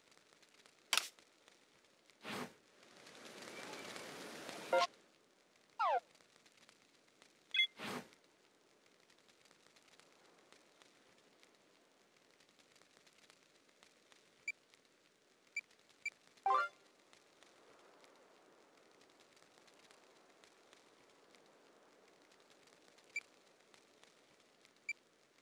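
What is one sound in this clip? Short electronic menu blips sound as selections change.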